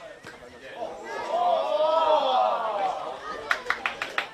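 A small crowd cheers and shouts as a shot goes at goal.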